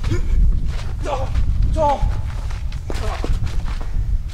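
A man speaks in short bursts, close by.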